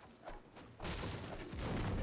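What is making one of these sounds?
A pickaxe strikes wooden beams with dull knocks.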